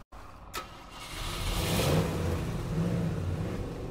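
A truck engine rumbles as the truck drives off.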